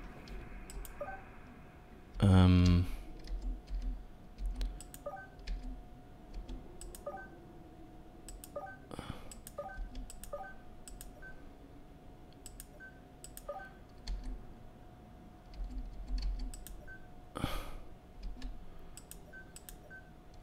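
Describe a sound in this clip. A handheld device gives short electronic beeps.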